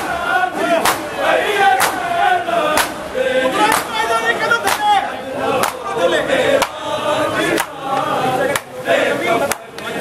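Many hands strike bare chests in a steady, even rhythm.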